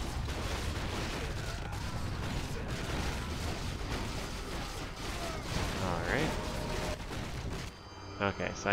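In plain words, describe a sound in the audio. Weapons clash in a busy fight.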